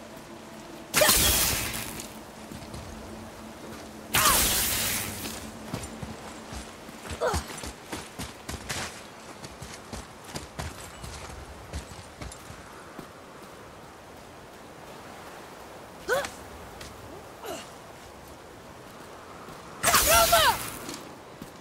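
An axe strikes rock with a loud crash.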